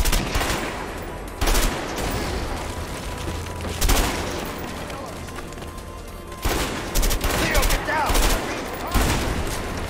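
Gunshots fire in bursts with loud blasts.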